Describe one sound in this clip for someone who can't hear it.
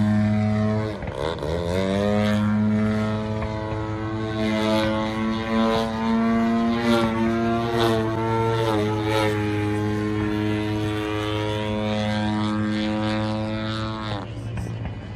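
A model airplane engine whines loudly overhead, its pitch rising and falling as it climbs and dives.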